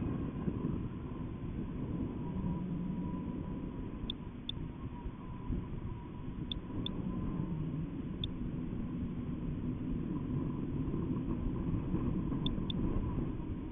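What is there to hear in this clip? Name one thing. Wind rumbles and buffets steadily against the microphone.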